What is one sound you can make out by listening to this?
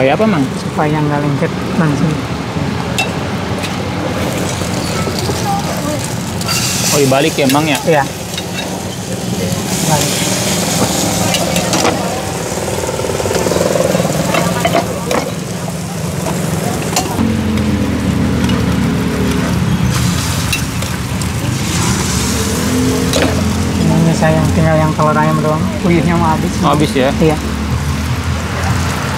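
Metal spatulas scrape and tap on a hot griddle.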